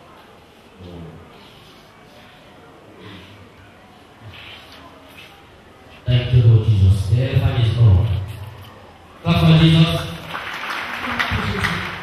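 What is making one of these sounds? A man speaks in a weak, strained voice close to a microphone.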